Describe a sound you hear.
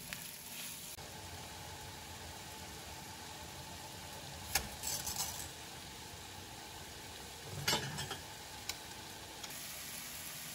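Water simmers in a pot.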